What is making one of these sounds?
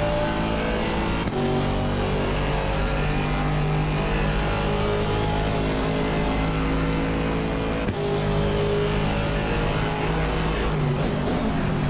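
A racing car engine roars at high revs, rising in pitch through each gear and dropping with quick gear changes.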